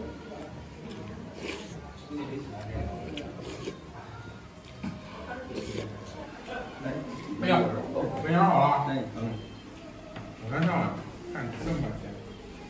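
A man slurps soup noisily.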